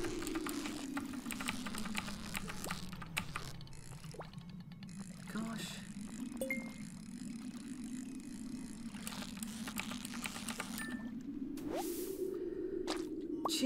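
A fishing reel whirs steadily as a line is reeled in.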